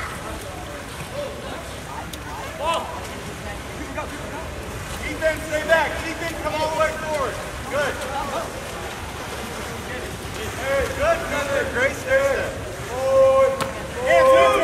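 Water splashes as swimmers thrash in a pool.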